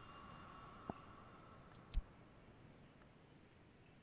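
A soft click sounds as a card is placed.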